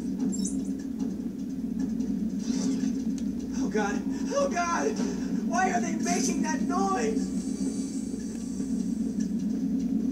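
A television plays a video game's sounds with a low, steady rumble.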